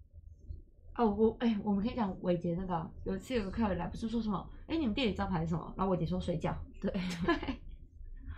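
Two young women talk and laugh close to a microphone.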